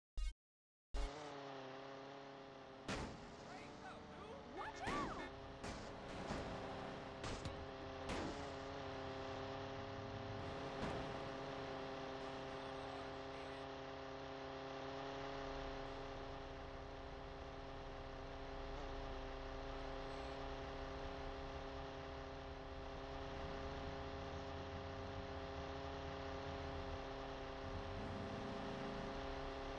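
A small model plane engine buzzes steadily.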